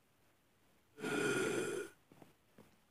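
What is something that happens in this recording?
A zombie creature groans hoarsely.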